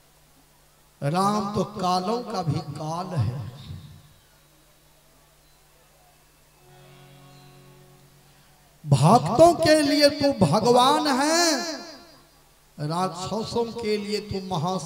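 A man sings and speaks with feeling through a microphone, in bursts with pauses between.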